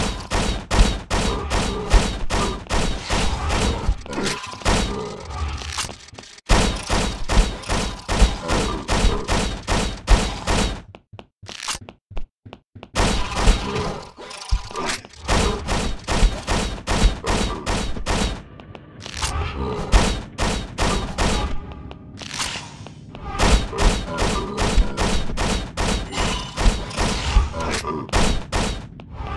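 Gunshots fire in rapid, repeated bursts.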